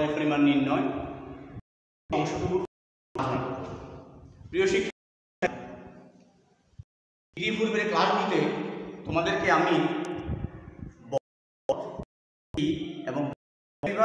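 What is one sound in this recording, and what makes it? A middle-aged man speaks loudly and clearly, as if lecturing, close by in a room with some echo.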